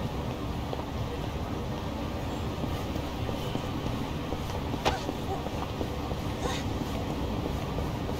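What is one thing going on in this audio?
Background noise of a busy street hums steadily.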